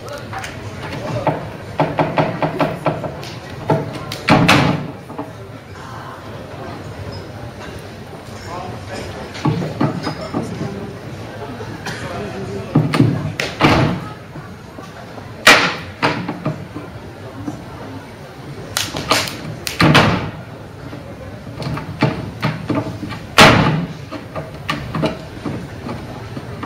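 A man stomps and jumps on a wooden stage floor.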